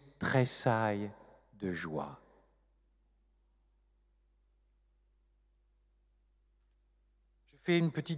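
A middle-aged man speaks with animation into a microphone, pausing between phrases.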